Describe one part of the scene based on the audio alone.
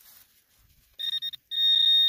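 A trowel scrapes into dirt.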